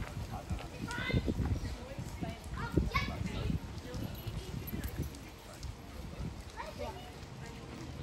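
A young woman talks casually nearby outdoors.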